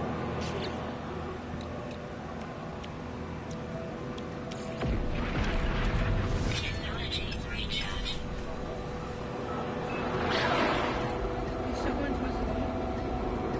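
A young woman talks casually into a microphone.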